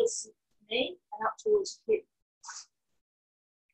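A woman speaks calmly into a close microphone.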